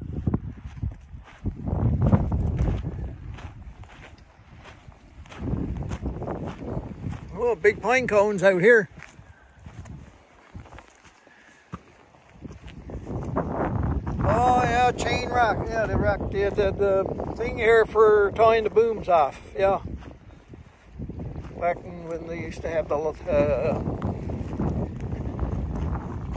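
Footsteps crunch on sand and rock.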